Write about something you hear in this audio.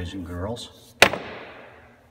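Heavy metal balls clack together.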